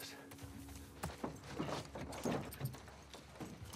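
Hands thump against a metal truck.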